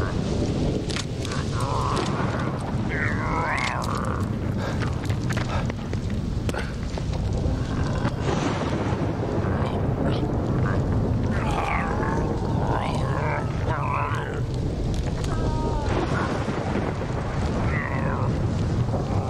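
A monstrous creature groans and snarls nearby.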